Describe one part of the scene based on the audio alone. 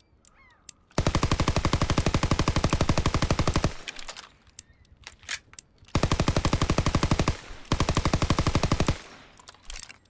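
A submachine gun fires long rapid bursts close by.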